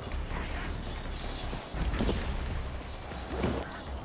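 Leaves rustle as someone pushes through dense plants.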